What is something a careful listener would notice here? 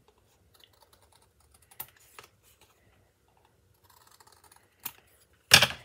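Scissors snip through thin card.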